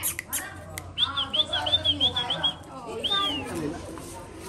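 A puppy yelps and whines in high, quick cries.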